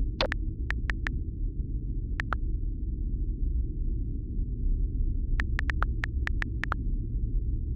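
Keyboard taps click quickly on a phone.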